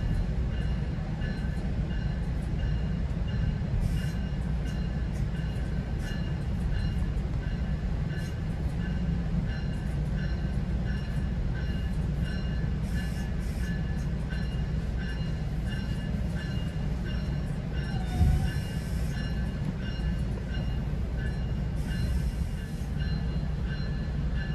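Wheels squeal and clatter faintly on the rails.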